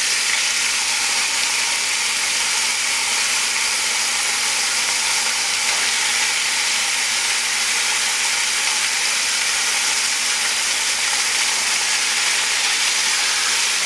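Metal tongs scrape and tap against a pan.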